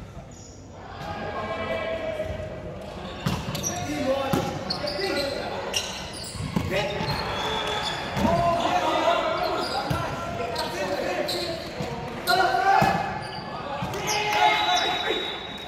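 Young men and women shout and call out to each other in a large echoing gym.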